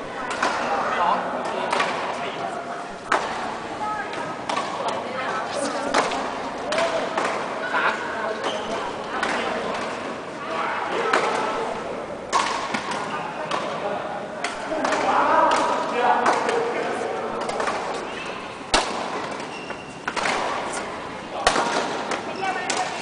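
Men call out to each other as they play, in a large echoing hall.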